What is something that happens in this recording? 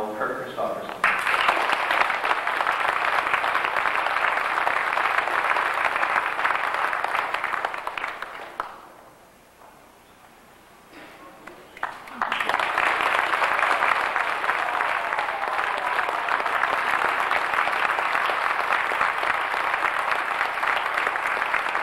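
A crowd applauds and cheers loudly in a large hall.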